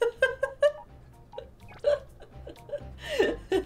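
A young woman laughs close to a microphone.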